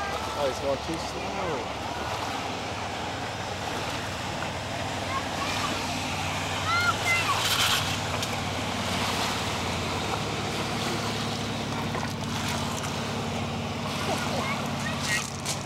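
Water sprays and hisses behind a water skier.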